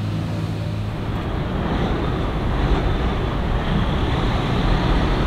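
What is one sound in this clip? Truck engines idle steadily outdoors.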